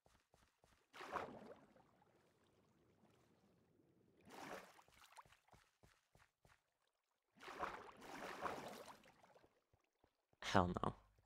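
Water splashes in bursts.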